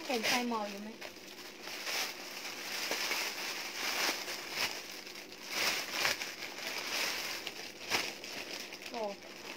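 Plastic packaging rustles and crinkles.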